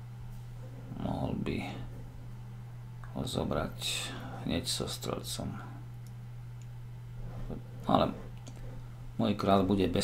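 A middle-aged man talks calmly and close to a microphone, in short bursts with pauses.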